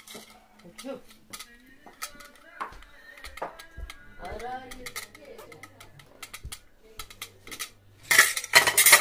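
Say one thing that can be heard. Metal forks clink against a ceramic plate.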